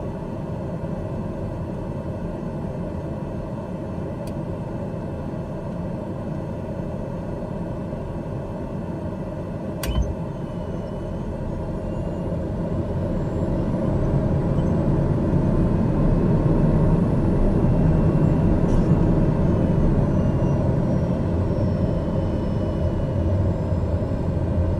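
An aircraft engine hums steadily inside a cockpit and grows louder.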